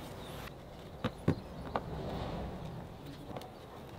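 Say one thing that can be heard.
A small wooden plug taps and knocks lightly into a hole in a board.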